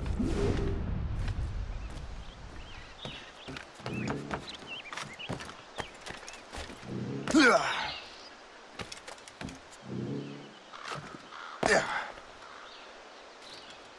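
Footsteps thud on wooden boards and grass.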